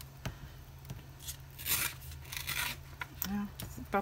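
Paper tears.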